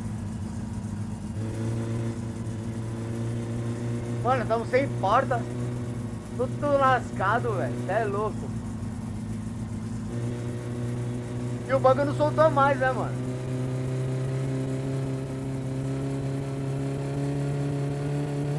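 A car engine drones steadily, rising slowly in pitch.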